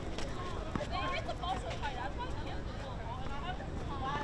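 A tennis racket strikes a ball outdoors.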